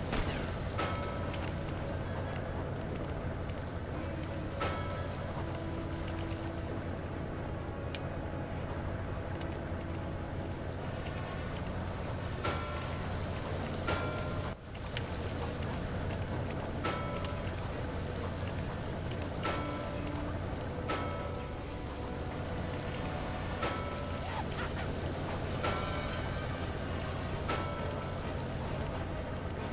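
A small boat's motor hums steadily over water.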